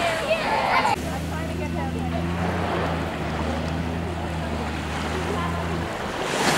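A boat engine hums steadily off the shore.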